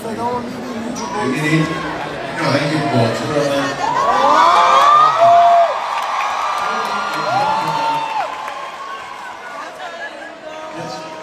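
A crowd cheers and sings along nearby.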